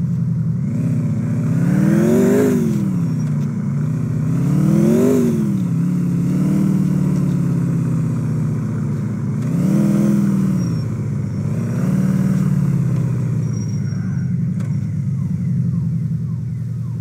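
A car engine revs up and down as a car drives.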